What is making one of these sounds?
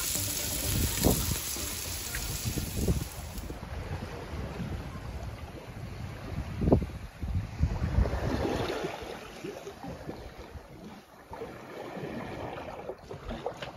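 Wind blows in gusts across open water.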